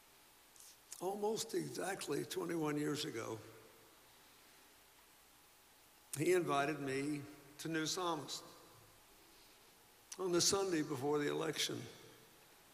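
An elderly man speaks slowly and earnestly into a microphone, with pauses between phrases.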